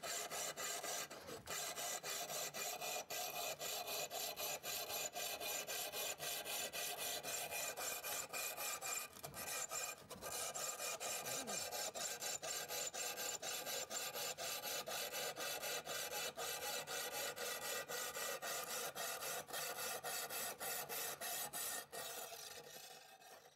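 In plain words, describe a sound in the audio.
A hand saw rasps back and forth through a tile.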